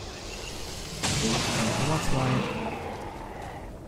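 A blast roars and rumbles away.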